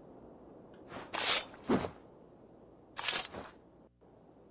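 A sword swishes sharply through the air several times.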